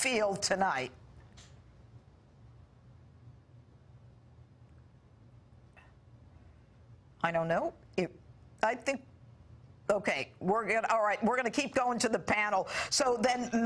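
A middle-aged woman speaks clearly into a microphone.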